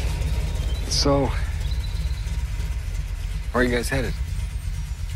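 A man speaks a few short words nearby.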